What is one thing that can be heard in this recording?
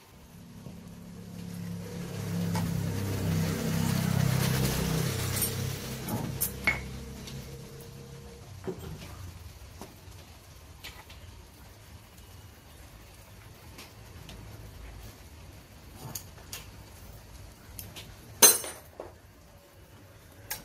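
Metal engine parts clink and scrape as hands work on them.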